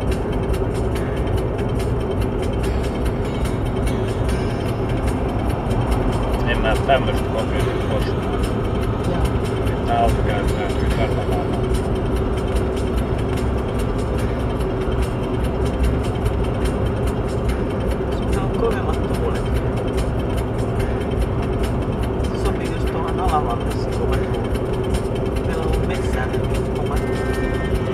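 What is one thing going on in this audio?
Tyres roll over a wet road with a steady rumble inside a moving car.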